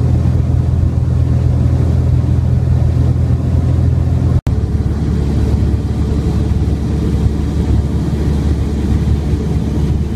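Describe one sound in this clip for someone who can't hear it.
An aircraft engine drones steadily with a low roar.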